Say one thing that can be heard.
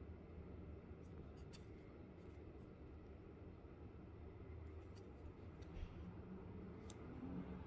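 Fingers click and tap against a small plastic device, up close.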